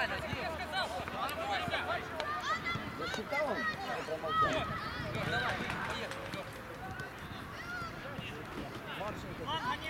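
Young boys shout and call out across an open outdoor field.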